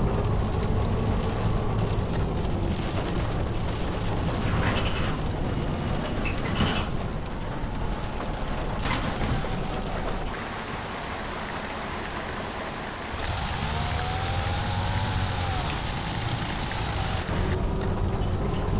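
A bus engine hums low and steady.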